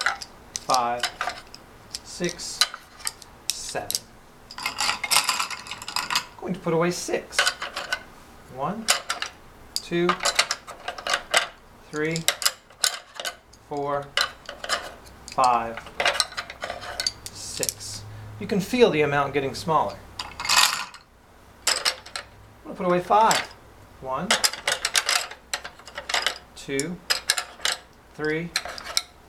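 Thin wooden sticks click and rattle against each other.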